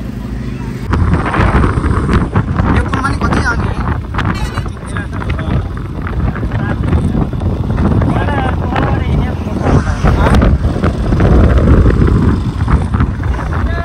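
A motorcycle engine runs while riding along a road.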